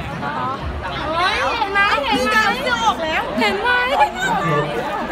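Young women squeal and shriek with excitement.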